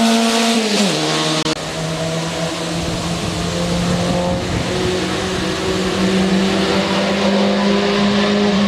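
A racing car engine revs steadily, rising slowly in pitch.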